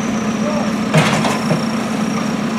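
A backhoe bucket knocks against dirt and rubble.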